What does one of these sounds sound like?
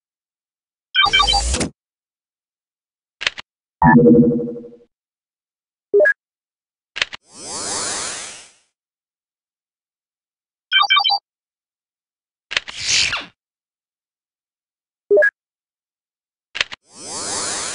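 Electronic menu beeps and whooshes sound in short bursts.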